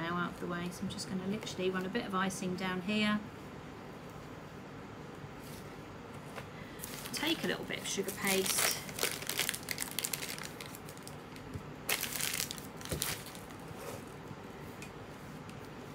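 A plastic piping bag crinkles as hands squeeze it.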